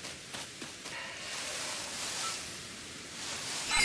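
Tall grass swishes as someone runs through it.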